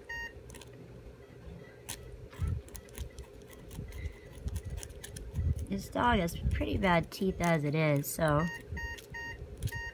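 A metal dental tool scrapes and clicks against small teeth.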